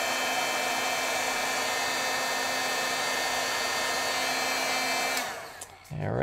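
A heat gun blows with a steady whirring hiss, then switches off.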